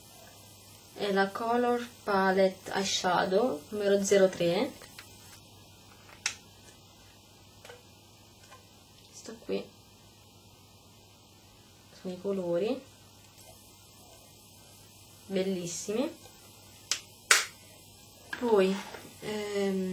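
A young woman talks calmly and close to a microphone, in short bursts with pauses.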